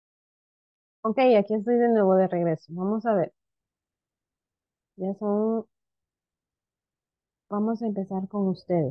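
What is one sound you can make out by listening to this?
A young woman speaks calmly over an online call, in short bursts with pauses.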